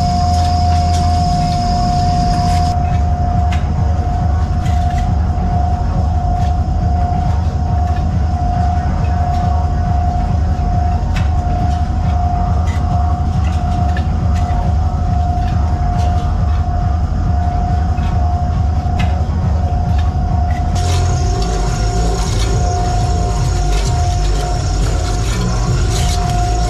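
Machinery hums steadily with a constant whine.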